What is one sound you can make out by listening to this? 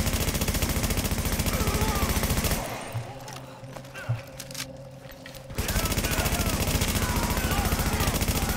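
Rapid gunfire rattles in long bursts.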